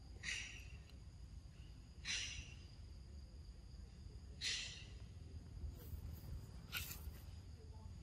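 A baby monkey squeals in short, high bursts.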